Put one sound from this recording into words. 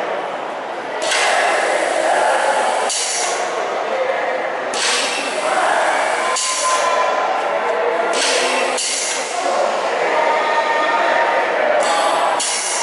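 A machine whirs and hisses as a metal frame slowly lifts.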